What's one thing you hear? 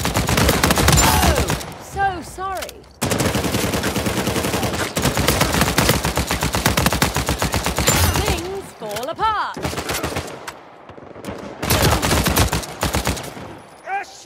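A submachine gun fires in rapid, rattling bursts.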